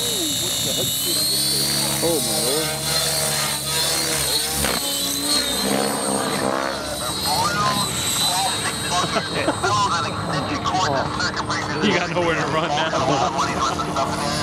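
A model helicopter's rotor whirs loudly as it flies overhead.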